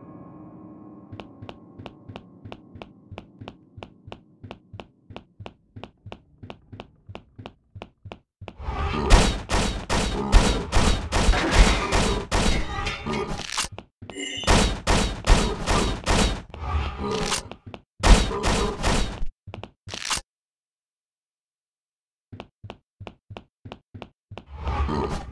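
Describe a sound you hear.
Footsteps tap quickly and evenly on a hard floor.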